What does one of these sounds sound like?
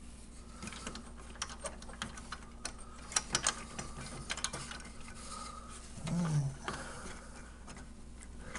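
Hands click and knock against plastic parts.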